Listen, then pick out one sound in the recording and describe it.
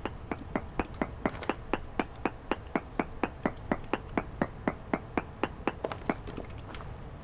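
A pickaxe chips rapidly at stone blocks.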